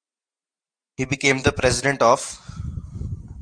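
A man speaks calmly into a nearby microphone.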